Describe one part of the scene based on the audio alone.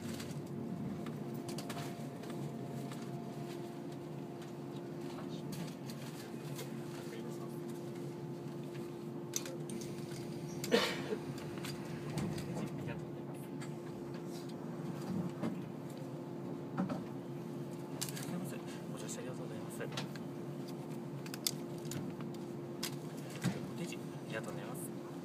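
A train rumbles and hums steadily as it slows and stops.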